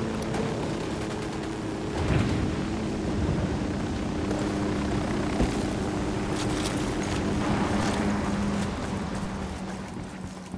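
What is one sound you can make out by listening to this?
A helicopter's rotor hums steadily, then fades away.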